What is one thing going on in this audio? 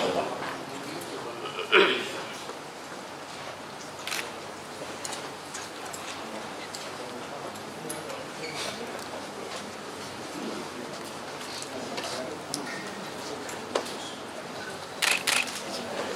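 A crowd of men and women murmur and chat nearby.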